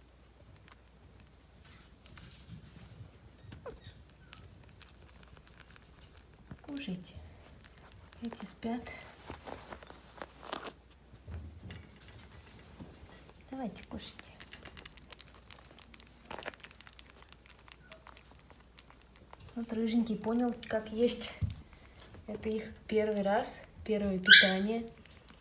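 Puppies lap and chew wet food noisily, close by.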